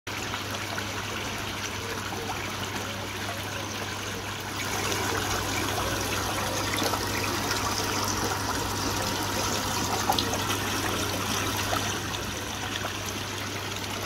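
Water trickles and bubbles steadily.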